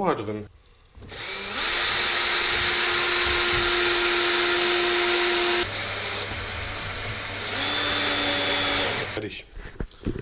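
A cordless drill whirs in short bursts, close by.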